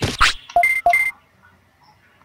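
Short electronic beeps chirp quickly.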